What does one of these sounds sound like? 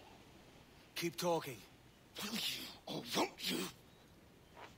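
A man speaks in a strained, pleading voice close by.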